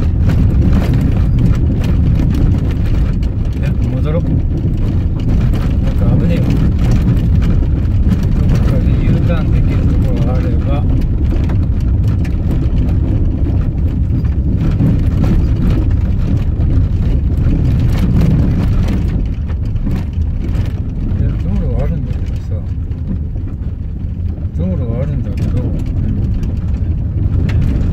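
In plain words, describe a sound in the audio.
Tyres crunch and rumble over gravel.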